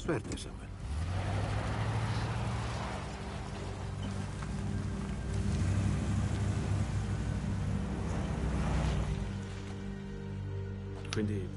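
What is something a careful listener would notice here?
A van engine rumbles as the van drives away.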